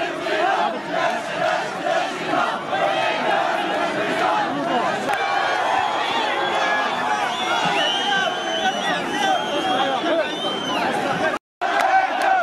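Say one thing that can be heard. A large crowd of men talks and shouts loudly outdoors.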